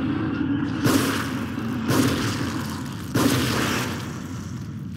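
Heavy gunshots boom in quick succession, each followed by a ringing echo.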